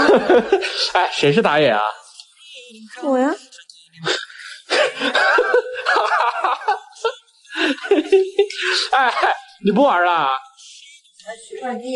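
A young woman talks close by with animation, in short bursts.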